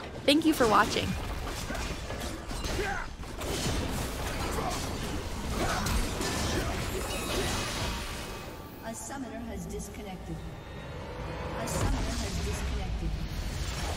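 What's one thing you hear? Magic blasts and hits crackle and burst in a fast battle.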